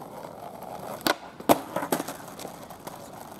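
A skateboard clatters and snaps against asphalt.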